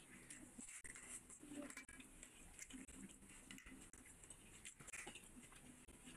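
Fingers squish and mix wet food on a plate.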